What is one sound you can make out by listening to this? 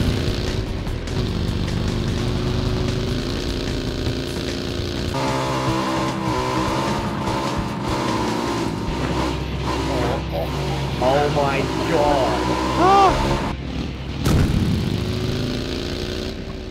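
A buggy engine drones over rough ground.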